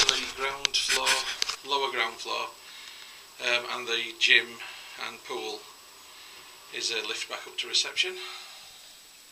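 A man talks close by.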